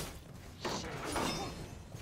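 A magic spell bursts with a whoosh.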